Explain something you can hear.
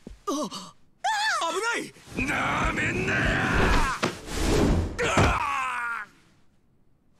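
A woman screams in fright.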